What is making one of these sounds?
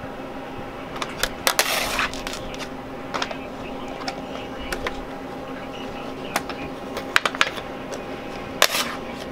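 A scraper scrapes and taps across a wet surface.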